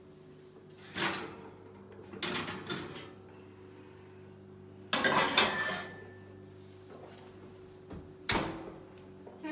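A glass baking dish scrapes and clatters against metal grates.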